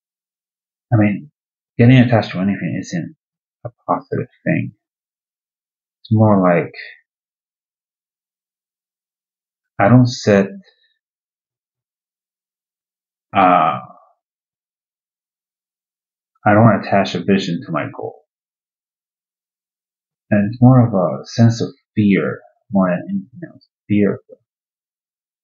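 A man speaks calmly and close, in short phrases with long pauses.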